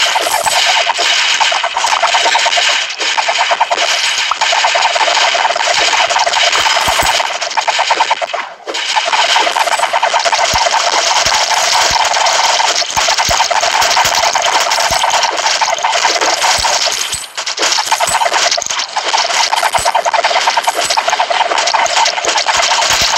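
Rapid game shots and hit effects crackle without pause.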